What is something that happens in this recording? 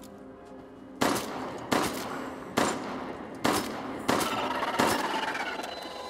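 Gunshots fire in quick succession, ringing in a large hall.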